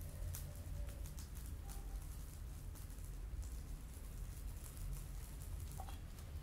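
Burning embers crackle faintly close by.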